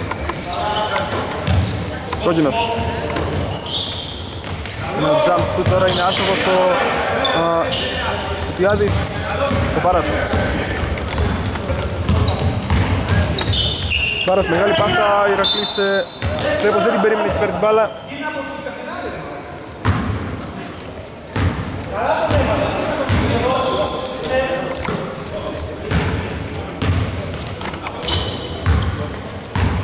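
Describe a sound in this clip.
Men shout and call out to one another across an echoing hall.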